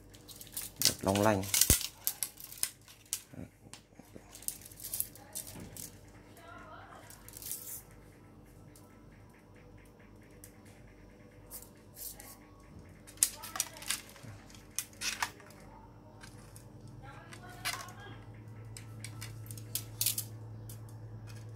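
Wooden rods clack and rattle against each other as a hand moves them.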